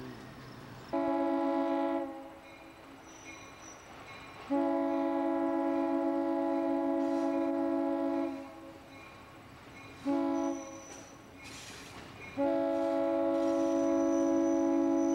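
A diesel locomotive sounds its air horn in long and short blasts as it approaches.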